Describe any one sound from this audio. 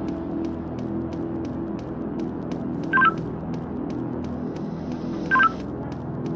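Quick, even footsteps tap on a hard floor.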